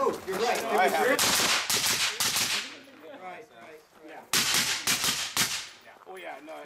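Gunshots crack nearby.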